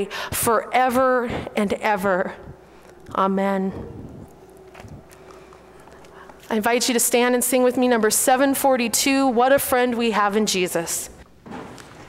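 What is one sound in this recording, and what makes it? A woman chants through a microphone in a large echoing hall.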